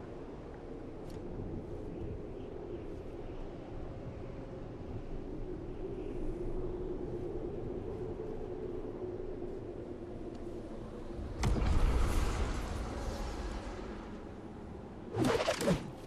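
Leaves rustle as a character moves through bushes.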